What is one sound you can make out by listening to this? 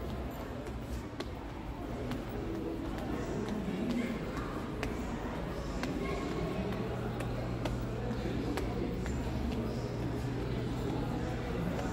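Distant voices murmur faintly in a large echoing hall.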